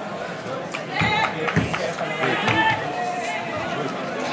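Men and women in a crowd shout excitedly.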